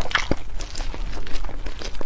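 Soft food squelches as a gloved hand squeezes it.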